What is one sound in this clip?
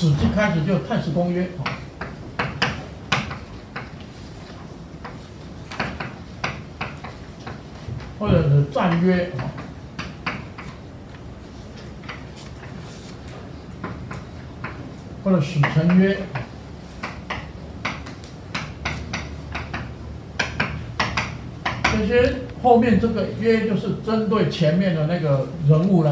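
An elderly man speaks slowly and calmly.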